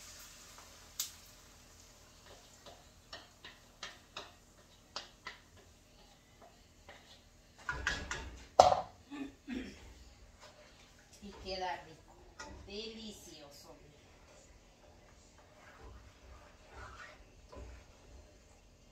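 A spoon taps and scrapes against a frying pan.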